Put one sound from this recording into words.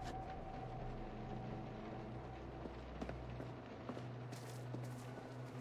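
A man's footsteps fall softly on a hard floor.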